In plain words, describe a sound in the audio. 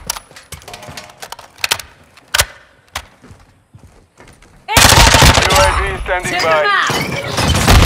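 Rifle shots fire in quick bursts.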